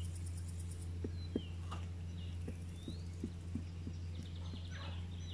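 A thin stick taps lightly on a hard board.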